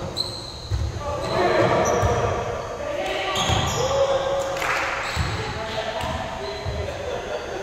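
Young men call out to each other across an echoing gym.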